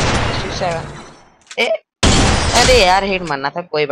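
A pistol fires a single shot.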